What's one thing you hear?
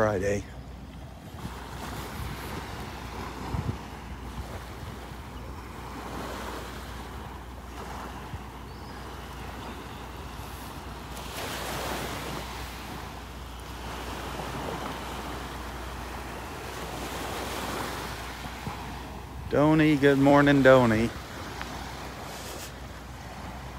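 Small waves lap softly on the shore, washing in and out.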